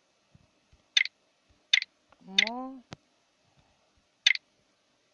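Short electronic clicks sound as letters are typed one by one.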